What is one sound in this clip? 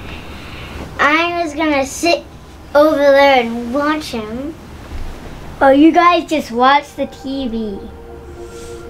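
A young boy talks with animation close by.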